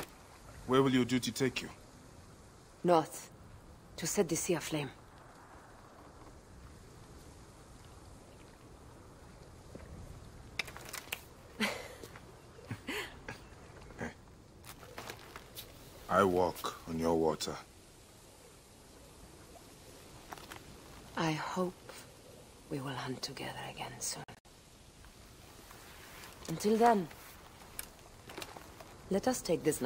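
A man speaks calmly and warmly at close range.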